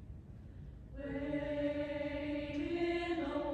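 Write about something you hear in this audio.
A choir begins to sing together.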